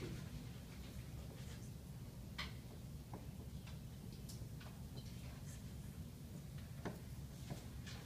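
A marker squeaks and taps on a whiteboard.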